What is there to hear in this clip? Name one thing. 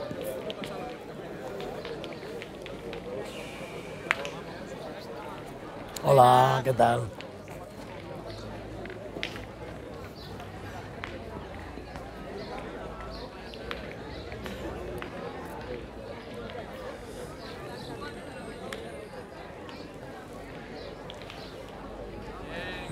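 Men talk in a low murmur outdoors.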